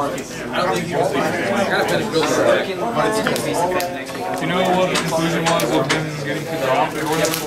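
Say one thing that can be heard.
Playing cards are shuffled by hand, tapping and sliding together.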